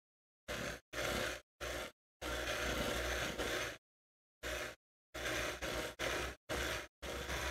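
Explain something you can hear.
An electric hand mixer whirs in short bursts, starting and stopping.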